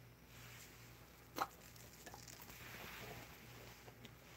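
A dog sniffs eagerly close by.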